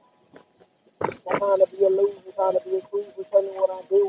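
A man sings loudly and close by.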